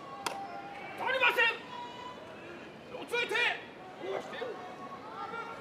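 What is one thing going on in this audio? A man calls out in long, drawn-out cries.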